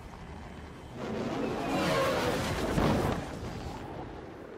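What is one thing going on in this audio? Thunder rumbles loudly through a storm.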